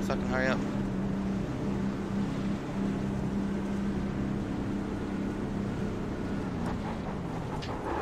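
A race car engine hums steadily at low speed.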